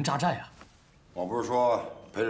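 A second man answers calmly.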